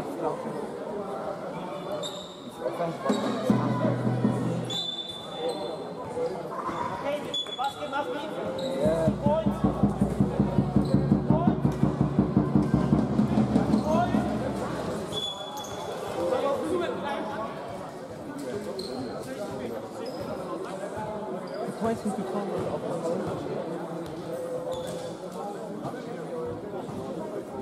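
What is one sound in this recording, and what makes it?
Echoing chatter fills a large hall.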